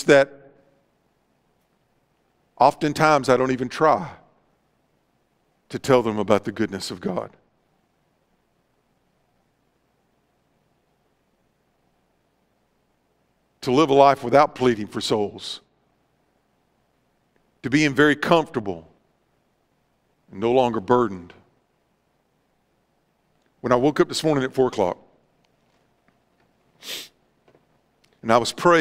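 A man speaks calmly into a microphone in short phrases with long pauses, in a large echoing hall.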